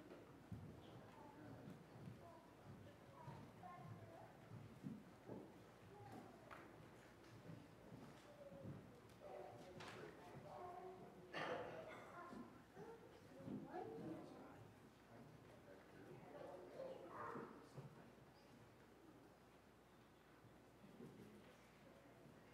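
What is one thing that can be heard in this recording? Men and women chat quietly at once in a room that echoes a little.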